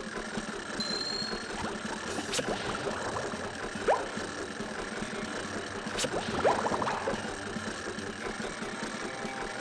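Cheerful game music plays steadily.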